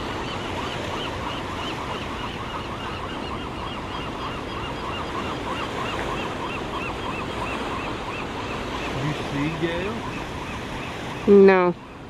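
Birds peck and probe softly at wet sand.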